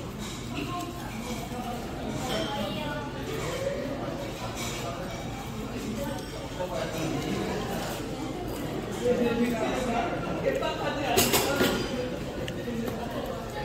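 A metal spoon and chopsticks scrape and click against a grilled fish.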